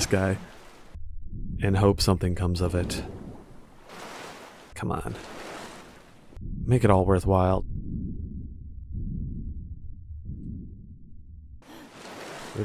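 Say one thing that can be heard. Water rumbles low and muffled while swimming underwater.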